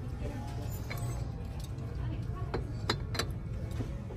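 A small ceramic dish clinks softly against a shelf.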